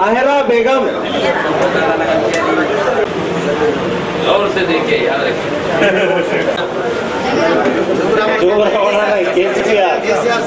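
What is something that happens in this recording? A man talks steadily and close by.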